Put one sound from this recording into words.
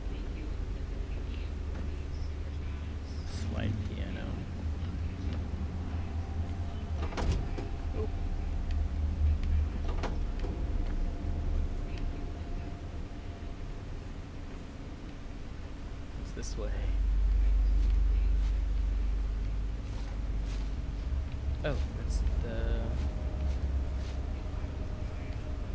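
A man speaks quietly into a close microphone.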